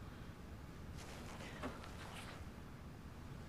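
An elderly woman sobs quietly.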